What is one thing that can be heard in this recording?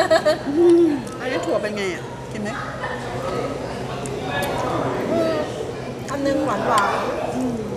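A second young woman talks and laughs close by.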